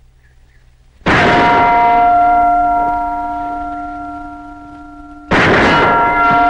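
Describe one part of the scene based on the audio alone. A rifle shot cracks loudly outdoors.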